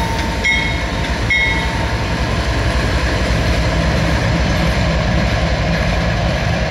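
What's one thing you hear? A diesel locomotive engine rumbles loudly close by.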